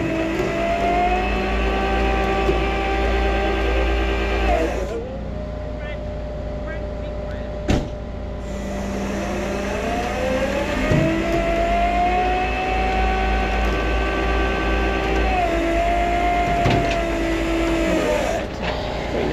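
A winch motor whines loudly, pausing briefly and then starting again.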